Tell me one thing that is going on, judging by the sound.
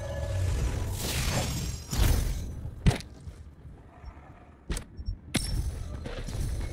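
A magical burst whooshes and shimmers, crackling with sparkles.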